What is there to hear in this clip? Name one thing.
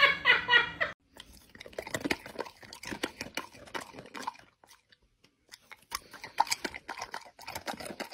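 A large dog grumbles and yowls.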